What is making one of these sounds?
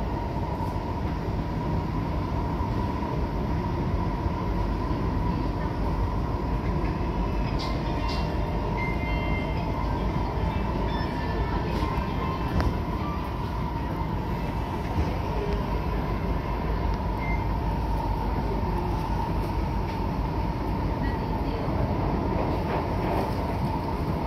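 A train's motor whines with a steady high hum.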